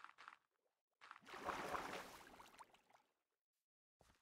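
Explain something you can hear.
Water splashes briefly.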